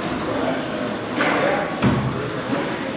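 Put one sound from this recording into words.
A squash ball is struck and smacks against a wall, echoing.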